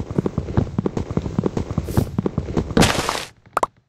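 Rapid knocks of an axe chopping wood.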